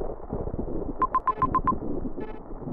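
A quick run of high electronic beeps plays as a game menu opens.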